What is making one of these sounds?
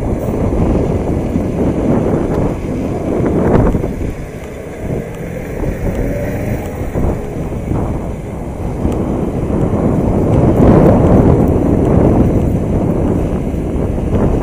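Wind buffets loudly across an open outdoor space.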